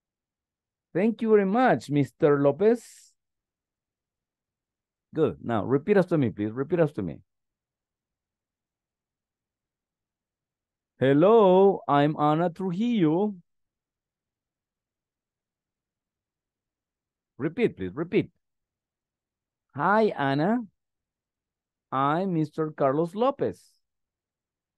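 A man reads out calmly over an online call, in short phrases with pauses.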